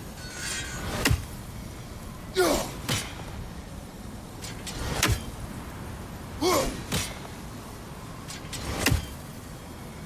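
A thrown axe strikes hard with a sharp metallic clang, several times.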